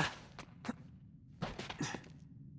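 A man lands with a thud after a jump.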